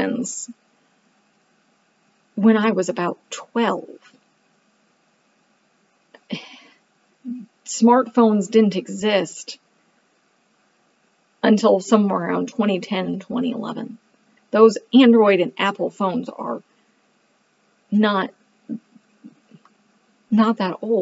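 A woman speaks calmly into a close microphone, with pauses.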